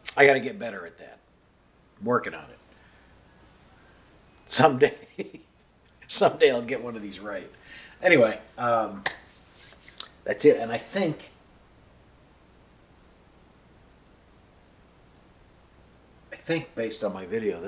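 A middle-aged man talks calmly and closely, in bursts with pauses.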